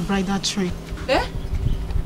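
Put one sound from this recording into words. A young woman sobs and wails.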